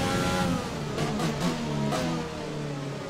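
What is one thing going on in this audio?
A racing car engine pops and crackles as it shifts down.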